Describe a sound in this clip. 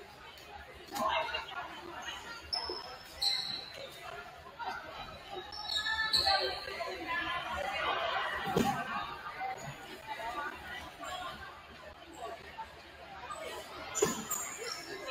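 A volleyball thumps off hands.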